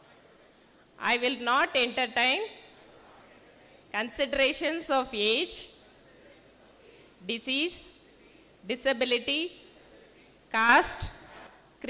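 A crowd of young men and women recite together in unison, in short bursts with pauses, in a large echoing hall.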